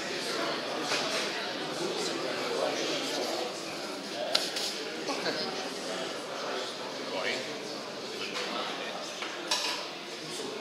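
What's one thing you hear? Metal parts clank as they are handled.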